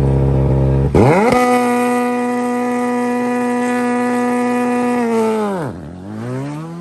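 A rally car engine revs hard and holds a high, steady roar as the car pulls away.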